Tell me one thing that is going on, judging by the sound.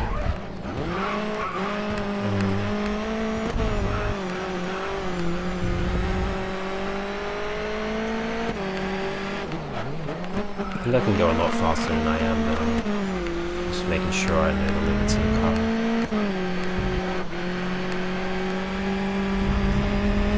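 A racing car engine roars steadily, rising in pitch as it speeds up and dropping with each gear change.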